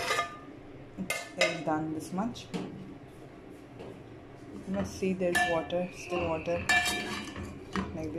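A metal spatula scrapes and clinks in a metal pot.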